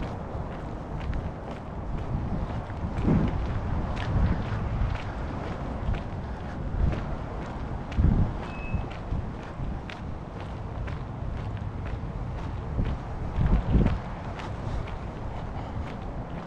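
Wind rumbles and buffets against a microphone outdoors, in gusts.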